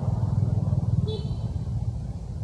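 A baby monkey squeaks briefly.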